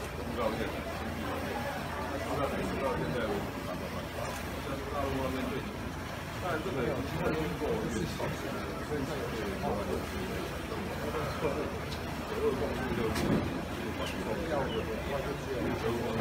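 Reporters murmur and talk in a crowd close by.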